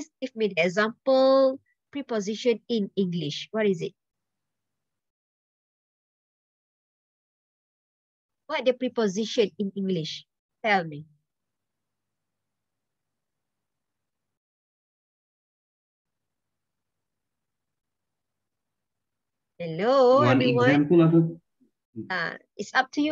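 A young woman speaks over an online call in short bursts, with pauses between.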